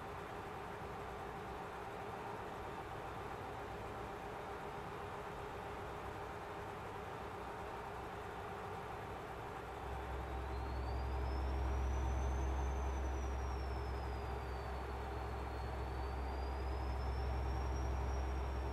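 A truck engine drones steadily and grows louder.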